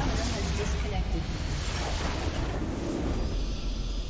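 A game battle crashes with loud explosions and spell effects.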